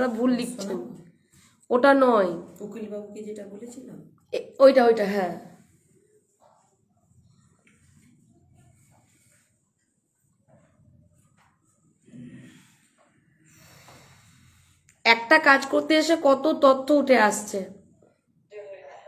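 A woman speaks close by, with animation.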